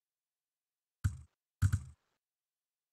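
Short menu clicks sound as an option is selected.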